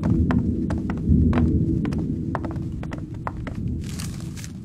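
Footsteps thud quickly on wooden stairs.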